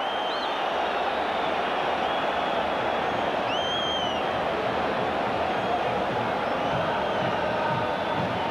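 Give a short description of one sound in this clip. A large crowd roars steadily in an open stadium.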